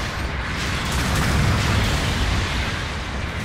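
A loud explosion bursts.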